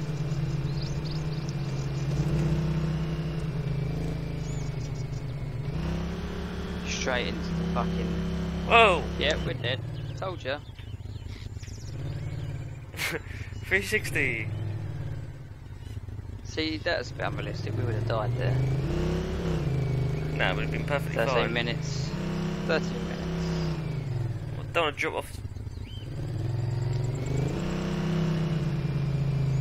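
A quad bike engine hums and revs as it drives over rough ground.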